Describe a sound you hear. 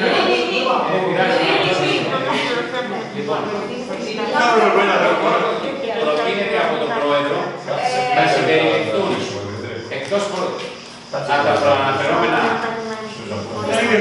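A man speaks at length, close by.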